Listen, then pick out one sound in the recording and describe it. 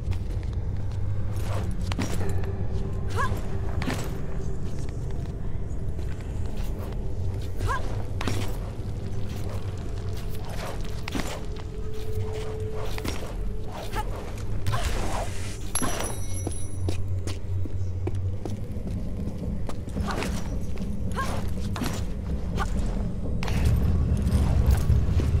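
Hands grab onto stone ledges with soft thuds.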